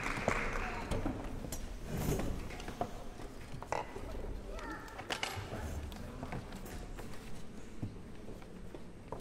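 String instruments are tuned with short, scattered notes in an echoing hall.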